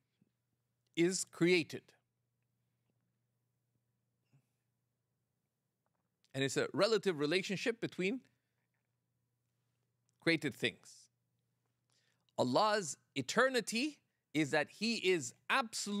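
A middle-aged man speaks with animation into a microphone, pausing often.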